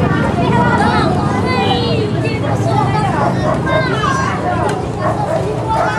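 An elderly woman talks to the children.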